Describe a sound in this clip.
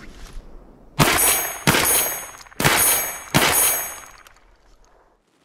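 A shotgun fires several loud blasts that echo outdoors.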